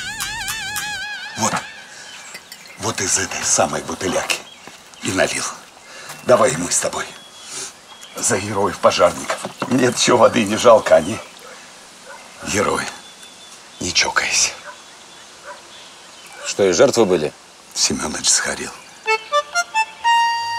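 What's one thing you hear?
An older man speaks calmly and sternly nearby.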